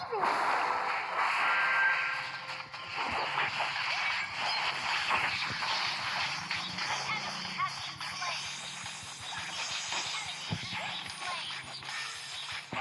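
Video game battle sound effects clash and burst rapidly.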